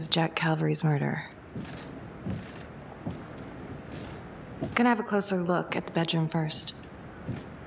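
A young woman speaks quietly and tensely, close by.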